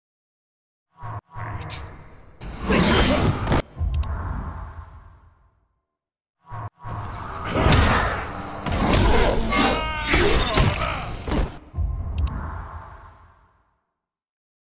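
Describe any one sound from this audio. Punches and blade slashes land in quick, loud bursts.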